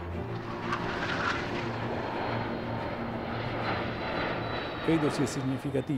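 Jet planes roar overhead.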